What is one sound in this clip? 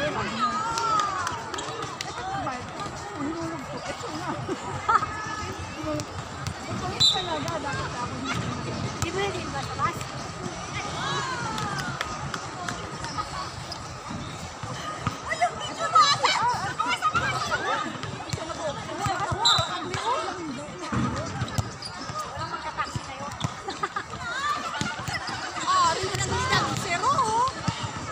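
Young women call out and shout to each other across the outdoor court.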